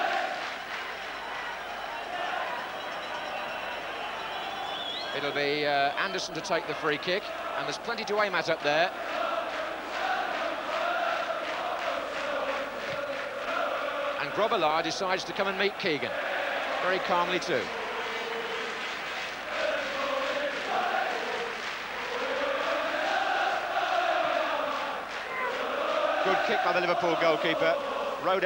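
A large crowd roars and chants in a big open stadium.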